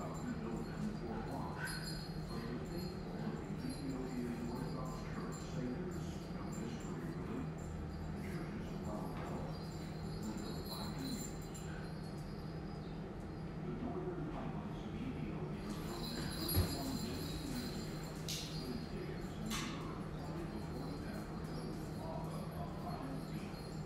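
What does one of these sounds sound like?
Dogs' claws click and patter on a hard floor.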